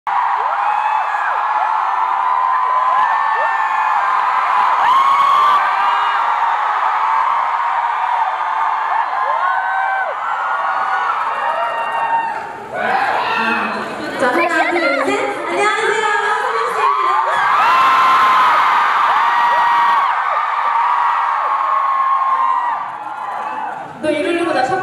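A large crowd screams and cheers loudly throughout.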